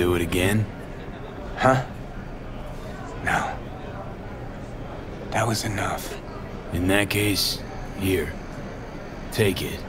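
A man speaks calmly and close by, in short phrases.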